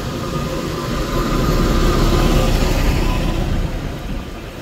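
A bus engine rumbles loudly nearby.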